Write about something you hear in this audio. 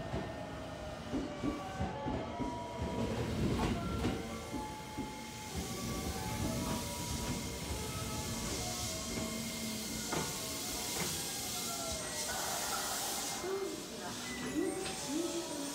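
A train rumbles into the station and slows to a stop.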